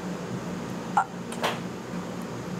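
Chopsticks click against a spoon.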